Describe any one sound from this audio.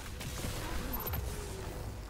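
An explosion crackles and booms.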